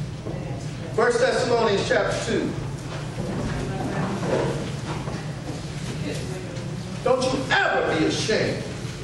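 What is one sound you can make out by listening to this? A man speaks in short bursts in an echoing room.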